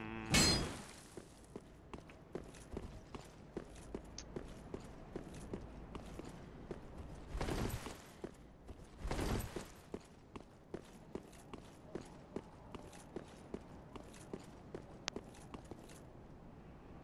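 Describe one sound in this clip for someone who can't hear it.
Armoured footsteps clank quickly on stone.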